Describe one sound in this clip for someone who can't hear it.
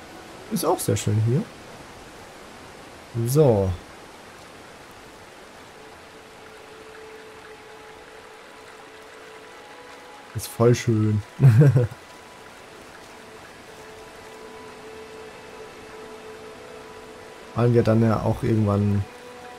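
A young man speaks calmly into a close microphone in short bursts.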